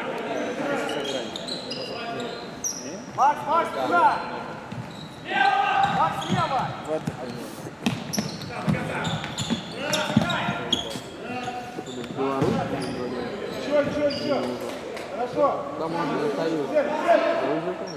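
Sneakers squeak sharply on the hard floor.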